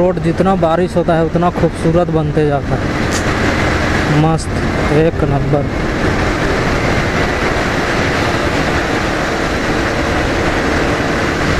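Wind rushes loudly past a moving motorcycle.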